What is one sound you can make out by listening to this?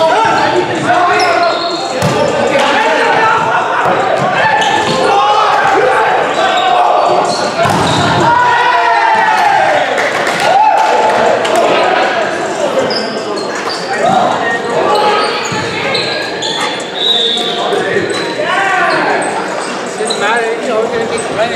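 Young men shout and call to each other in a large echoing gym.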